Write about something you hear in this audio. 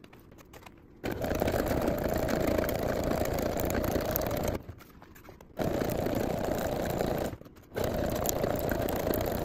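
A sewing machine whirs rapidly as it stitches, stopping and starting in bursts.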